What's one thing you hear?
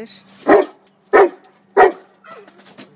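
A large dog barks loudly a few times close by.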